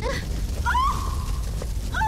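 A woman screams in terror.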